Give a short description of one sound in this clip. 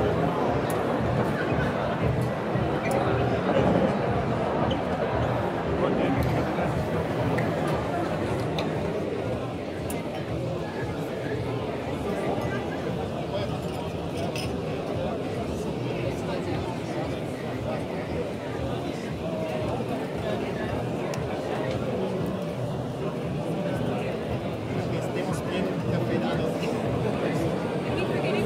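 A crowd chatters throughout a large, busy hall.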